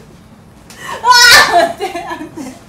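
A young woman cries out loudly and close by.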